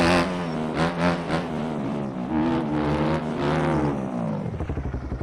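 A motorcycle engine revs and whines loudly, rising and falling.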